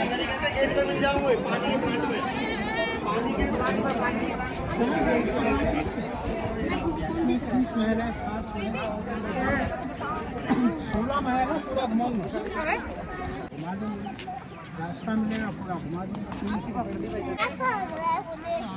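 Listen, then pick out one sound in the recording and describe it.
A crowd of visitors chatters outdoors in the background.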